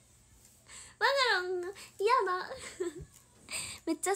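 A young woman laughs brightly close to a microphone.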